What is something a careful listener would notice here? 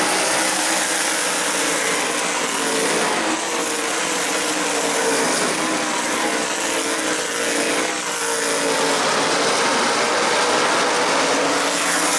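Loud race car engines roar past at high speed.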